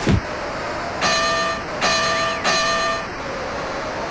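A bell rings three times.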